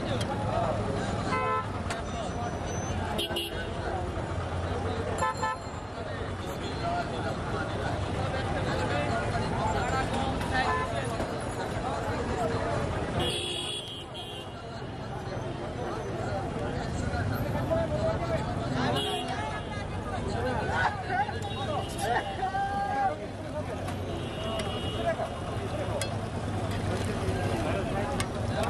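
Men talk nearby over the crowd.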